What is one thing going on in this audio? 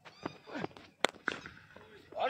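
A cricket bat strikes a leather ball.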